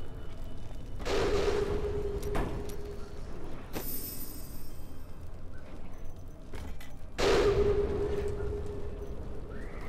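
A game's sound effects whoosh and ring out with a low tone.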